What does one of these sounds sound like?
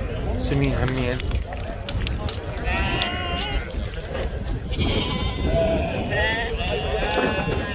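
Sheep bleat loudly close by.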